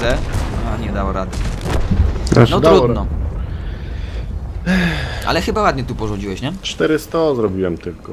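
A loud explosion booms and then crackles into fire.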